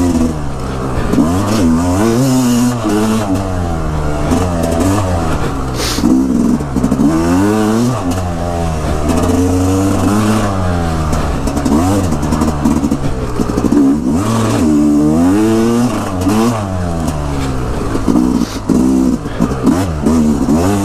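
A dirt bike engine revs up and down loudly and close by.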